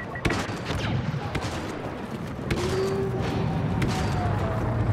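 Blaster guns fire in sharp bursts.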